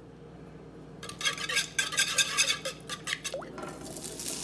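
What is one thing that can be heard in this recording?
A fork whisks eggs briskly against a bowl.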